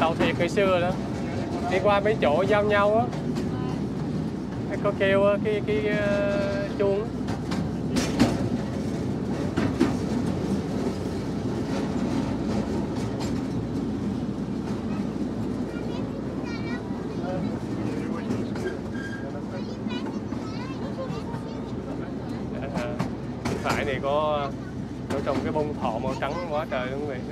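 A small open train rumbles steadily along its track.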